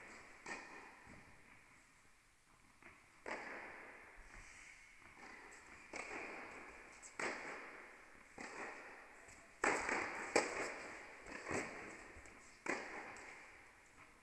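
Tennis balls are struck back and forth with rackets, each hit echoing in a large hall.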